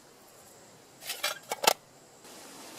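A metal striker scrapes sharply a few times.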